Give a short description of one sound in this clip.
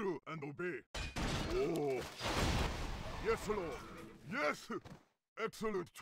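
Weapons clash and spells burst in a fight.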